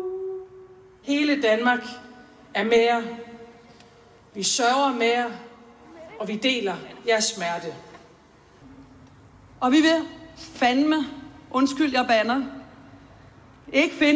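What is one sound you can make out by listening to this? A woman speaks slowly and solemnly through loudspeakers outdoors, with pauses between phrases.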